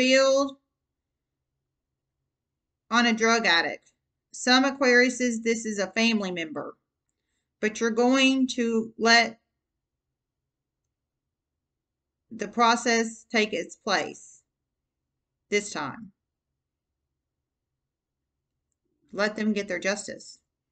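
A woman speaks calmly close to a microphone, in short phrases with pauses.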